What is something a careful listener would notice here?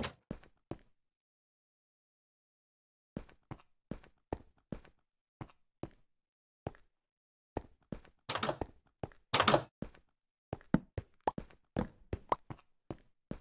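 Footsteps fall on stone.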